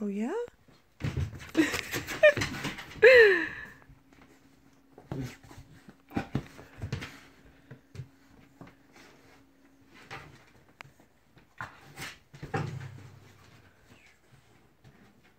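A dog's paws scratch and rustle on a blanket.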